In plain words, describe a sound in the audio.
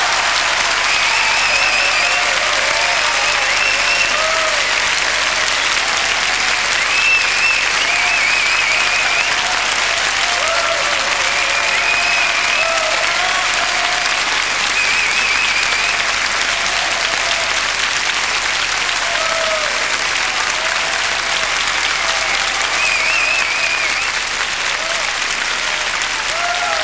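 People in an audience cheer and whistle.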